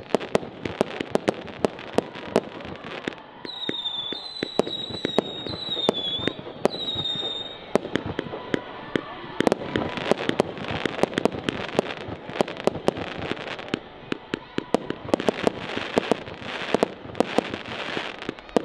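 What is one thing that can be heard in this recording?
Fireworks bang and crackle in rapid bursts outdoors.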